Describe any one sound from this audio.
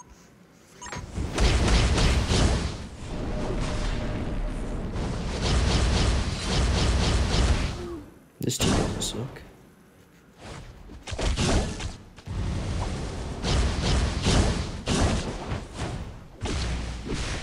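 Loud explosions boom and roar in bursts.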